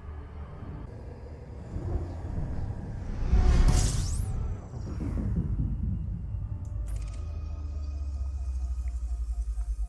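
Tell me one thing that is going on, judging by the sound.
A spaceship engine builds to a loud rushing roar, then settles into a low hum.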